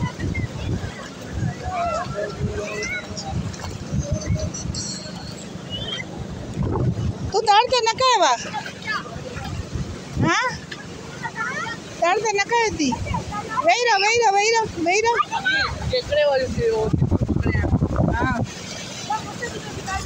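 Small waves wash onto a beach outdoors.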